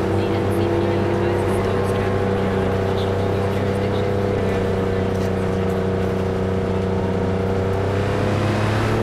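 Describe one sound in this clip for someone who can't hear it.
A sports car engine hums steadily as the car drives along.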